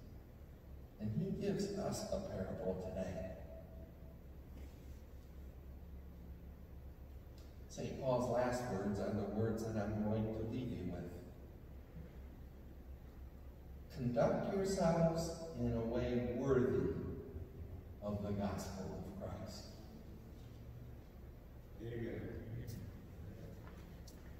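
A man speaks calmly in a large echoing room, heard from a distance.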